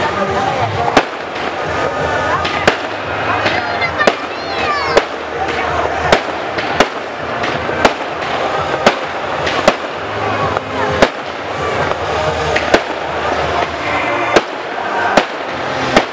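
Fireworks crackle and sizzle after the bursts.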